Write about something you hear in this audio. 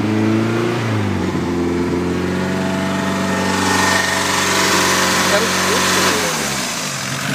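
A car engine holds a loud, steady high roar.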